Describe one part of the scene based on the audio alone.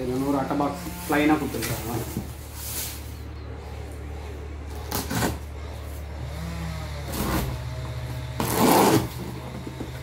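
Hands tap and rub against a cardboard box.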